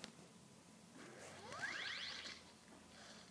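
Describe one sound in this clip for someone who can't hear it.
A bright rising chime rings out.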